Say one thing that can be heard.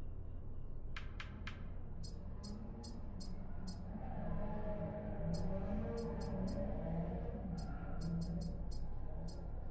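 Short menu ticks click in quick runs.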